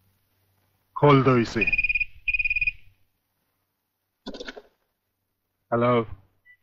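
A man talks cheerfully into a telephone.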